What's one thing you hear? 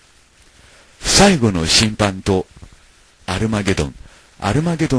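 An older man speaks calmly and clearly into a microphone.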